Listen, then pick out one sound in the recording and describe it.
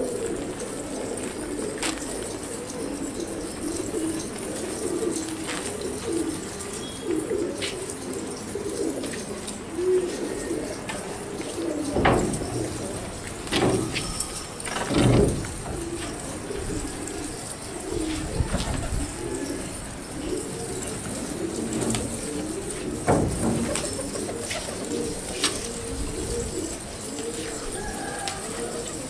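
A large flock of pigeons coos steadily close by.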